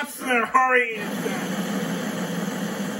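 Flames roar in a burst of fire.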